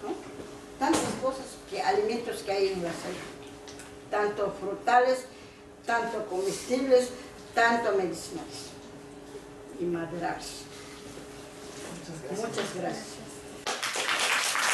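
A woman speaks calmly, heard through an online call.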